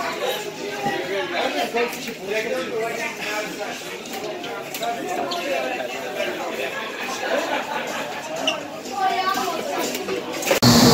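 Several men and women chat nearby.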